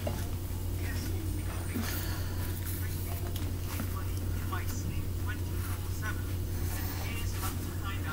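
Headphones knock and rustle as they are handled close by.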